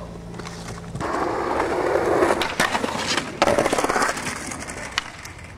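Skateboard wheels roll on concrete.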